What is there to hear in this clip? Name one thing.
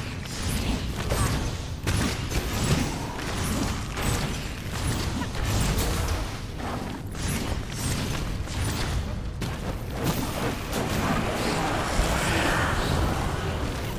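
Magic blasts burst with sharp bangs.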